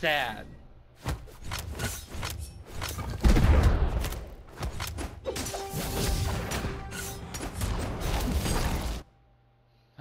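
Blades swish and hits thump in a fast video game fight.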